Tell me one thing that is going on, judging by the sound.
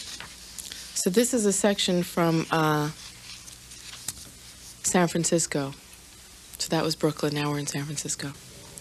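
A woman reads aloud into a microphone with a calm, expressive voice.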